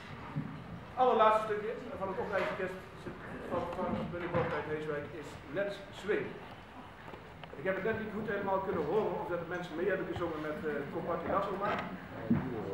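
A man speaks calmly to an audience in an echoing hall.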